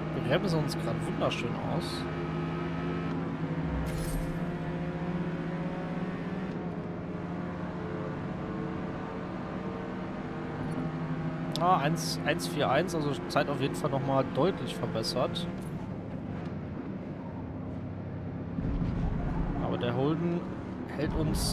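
A racing car engine roars steadily, rising and falling in pitch as the car speeds up and slows.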